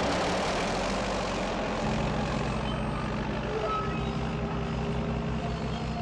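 A bulldozer's tracks clank and crunch over rough ground.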